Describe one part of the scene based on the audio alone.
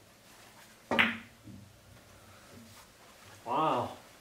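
Billiard balls clack together and roll across the table.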